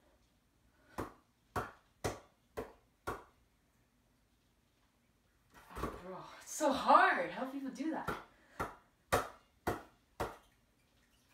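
A hand slaps a spinning basketball.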